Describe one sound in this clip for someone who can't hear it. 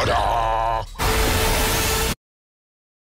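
A monster snarls loudly.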